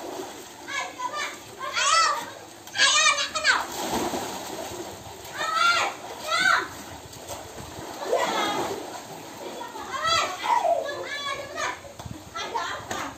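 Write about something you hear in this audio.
Young boys shout and laugh excitedly close by.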